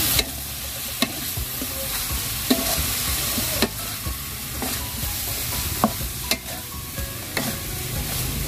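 A wooden spatula scrapes and knocks against a metal pan as food is stirred.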